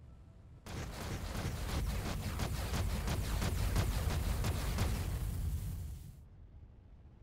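Rapid gunfire rattles with deep rumbling blasts.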